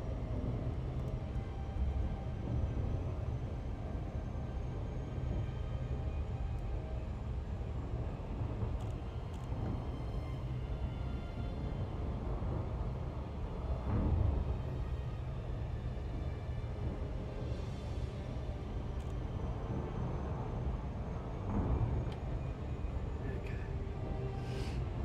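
A deep spaceship engine hum drones steadily.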